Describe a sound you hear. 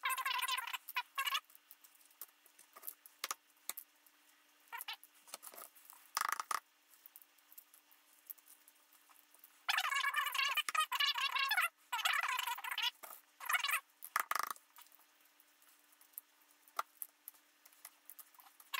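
Eggshells crack and crinkle as they are peeled.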